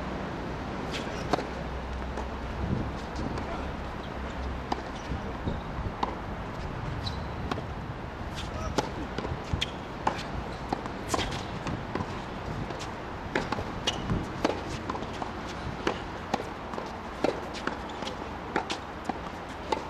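A racket strikes a tennis ball with sharp pops.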